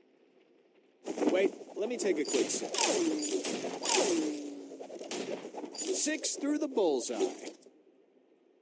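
Battle sound effects clash, whoosh and burst in quick bursts.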